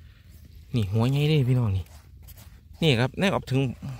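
A hand scrapes and scoops loose, dry soil.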